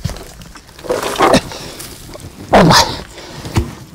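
A shovel scrapes and cuts into soil.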